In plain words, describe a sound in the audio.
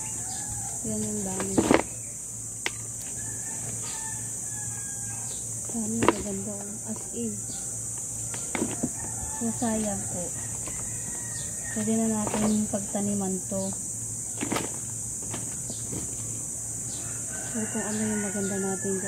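A woman talks quietly nearby.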